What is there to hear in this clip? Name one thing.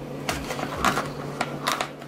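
A plastic sleeve crinkles under fingers.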